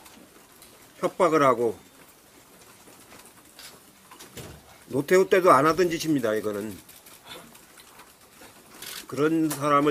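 An elderly man speaks slowly and haltingly into a microphone, with long pauses.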